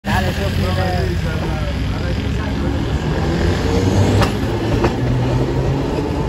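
Traffic hums on a nearby street.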